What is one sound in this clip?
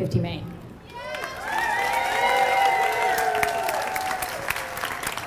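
A crowd cheers and whoops.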